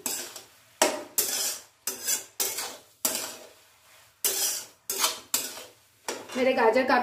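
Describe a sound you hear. A spatula scrapes and stirs food in a metal pan in quick repeated strokes.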